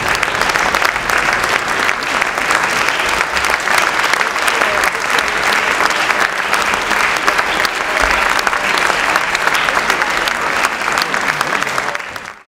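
A large audience applauds loudly and steadily in a big hall.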